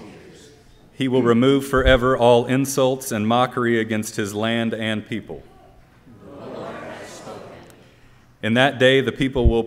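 A man reads aloud through a microphone in an echoing hall.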